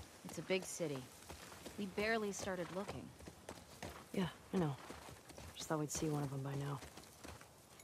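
A young woman talks calmly.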